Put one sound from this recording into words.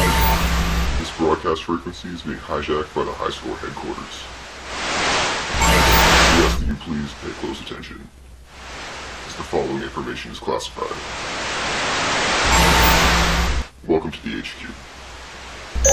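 A man speaks through a heavily distorted, electronic voice effect.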